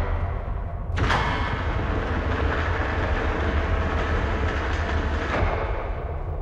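A heavy metal door slides open with a loud hiss.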